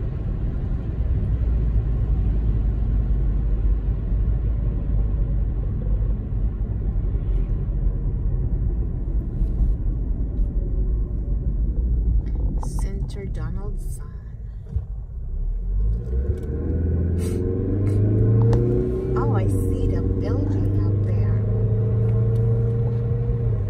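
A car engine hums and tyres roll steadily on a paved road.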